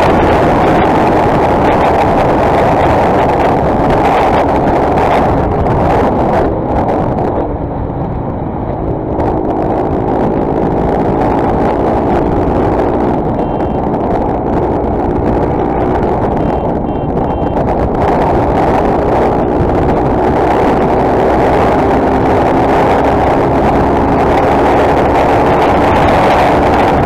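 Wind roars loudly against a microphone.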